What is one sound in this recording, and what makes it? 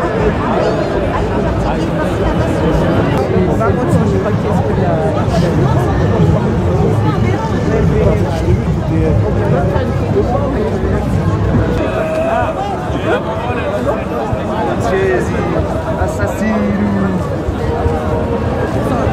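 A large crowd of men and women chatters and calls out outdoors.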